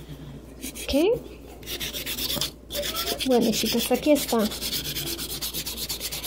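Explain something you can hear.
A nail file rasps quickly back and forth across a fingernail, close by.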